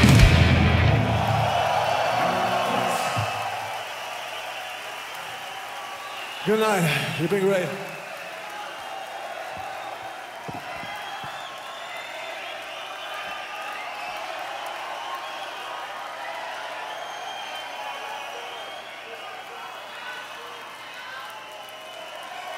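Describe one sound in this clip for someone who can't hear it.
A large crowd cheers and shouts in a big echoing hall.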